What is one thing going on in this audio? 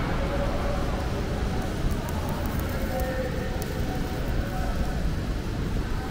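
An electric welding arc crackles and hisses close by.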